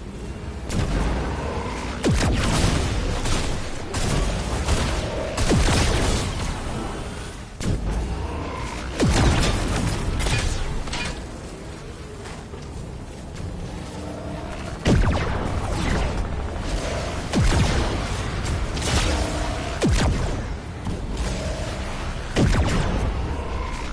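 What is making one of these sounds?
Loud sci-fi energy blasts boom again and again.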